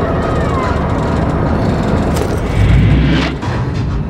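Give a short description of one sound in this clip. A weapon is swapped with a metallic clatter.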